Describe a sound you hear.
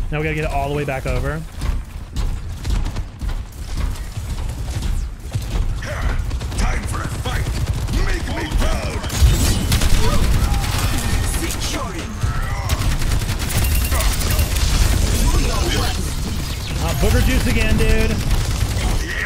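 Game gunfire rattles rapidly.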